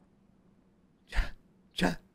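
A young man shouts excitedly into a close microphone.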